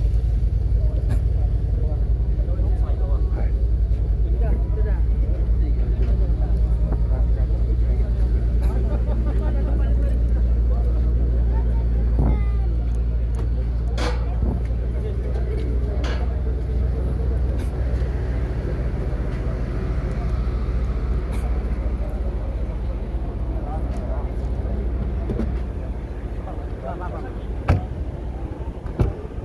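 A crowd of men and women murmurs and talks outdoors.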